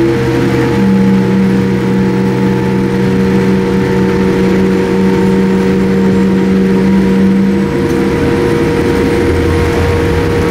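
Jet engines hum steadily inside an airliner cabin.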